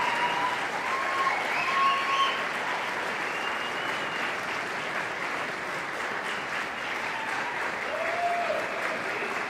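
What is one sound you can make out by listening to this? A group of men sings together in a large echoing hall.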